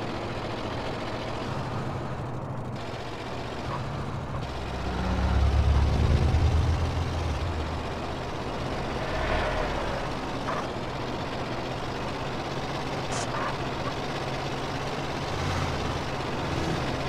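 A bus engine hums as it drives along a road.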